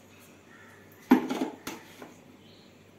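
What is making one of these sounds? A steel jar clanks down onto a mixer base.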